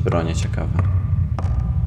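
A man speaks briefly and casually into a microphone.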